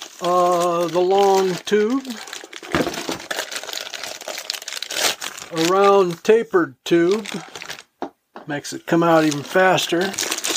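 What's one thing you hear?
Plastic packaging rustles as parts are unpacked.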